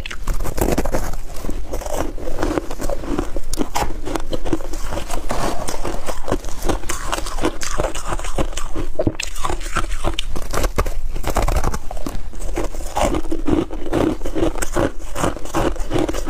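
A young woman bites and crunches loudly on ice close to a microphone.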